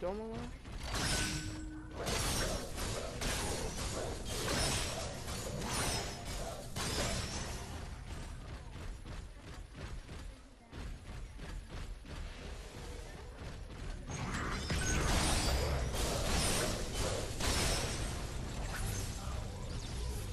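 Heavy blows and energy blasts crash rapidly in a fight.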